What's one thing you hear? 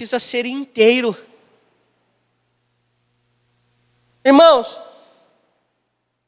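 A man speaks with animation through a microphone in an echoing hall.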